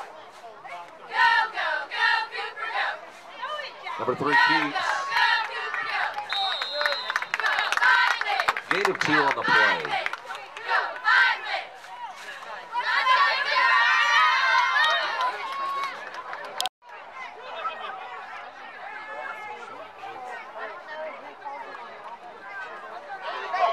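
Young girls shout and cheer close by.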